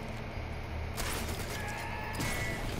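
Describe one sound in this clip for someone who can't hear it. A silenced pistol fires a single muffled shot.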